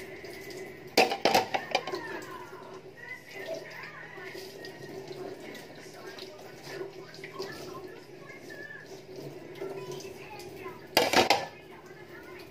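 Metal utensils clatter and knock close by.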